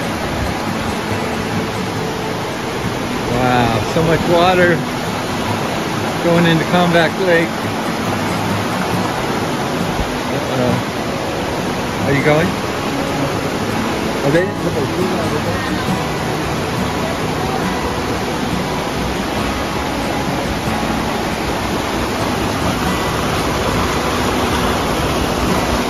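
A stream rushes and splashes loudly over rocks.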